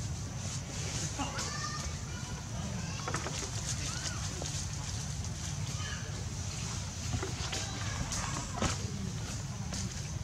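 A baby monkey squeaks in short high cries.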